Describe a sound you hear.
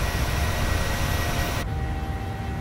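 A jet airliner's engines roar loudly as it flies past.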